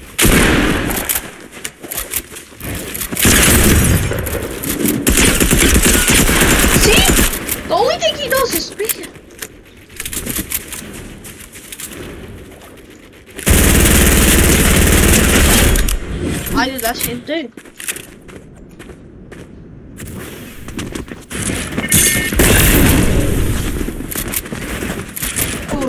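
Game building pieces snap into place with quick clacks.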